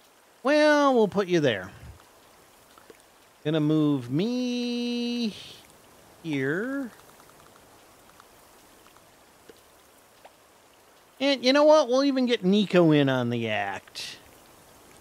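An elderly man talks with animation into a close microphone, in short bursts.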